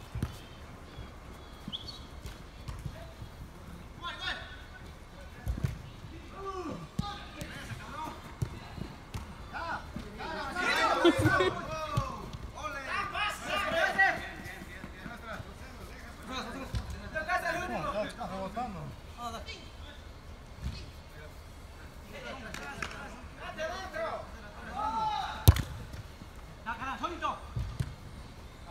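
A football is kicked with sharp thuds.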